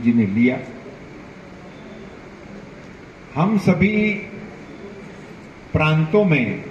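An elderly man speaks slowly and firmly into a microphone, with pauses between phrases.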